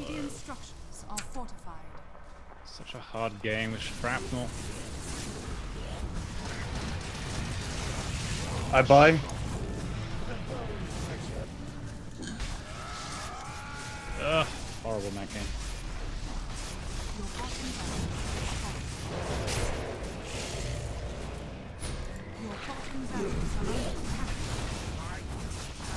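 Game battle effects clash and crackle.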